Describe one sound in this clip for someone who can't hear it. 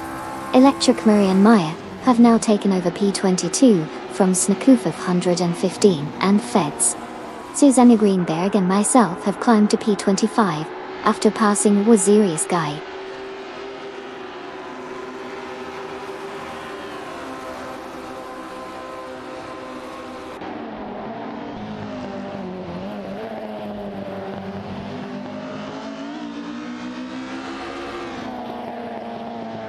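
A racing car engine roars and whines, rising and falling in pitch as it changes gear.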